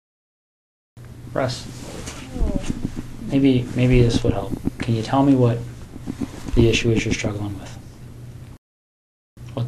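A man speaks calmly, heard through a room recording.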